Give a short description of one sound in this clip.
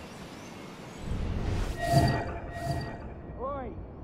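A loud whoosh rushes past.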